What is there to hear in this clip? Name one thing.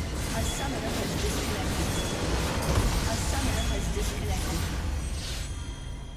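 A large blast rumbles as a structure explodes in a game.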